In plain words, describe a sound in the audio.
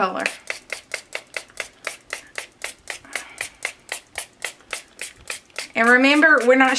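A hand dabs paint onto paper with quick, even taps.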